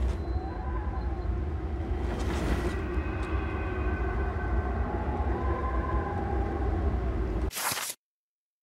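A fire roars and crackles with a deep rumble.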